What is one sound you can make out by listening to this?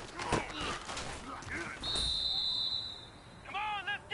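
Football players thud together in a tackle.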